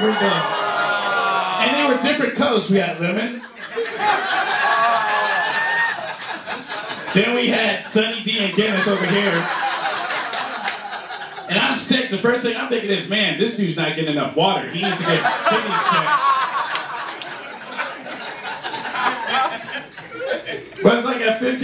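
A man speaks with animation into a microphone through a loudspeaker.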